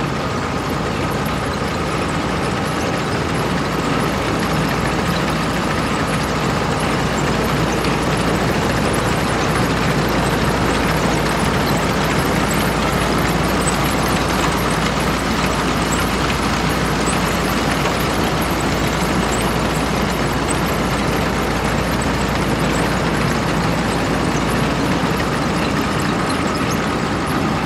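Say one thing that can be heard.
A large diesel engine rumbles steadily close by.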